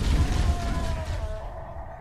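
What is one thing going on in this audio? An energy rifle fires in quick, crackling bursts.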